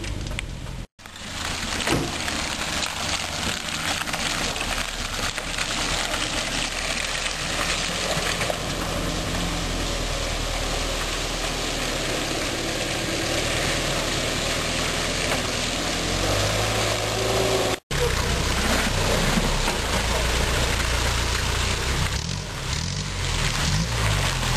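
Tyres churn through thick mud.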